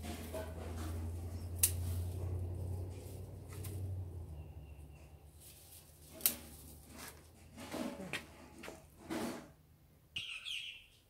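Leaves rustle as fern fronds are handled.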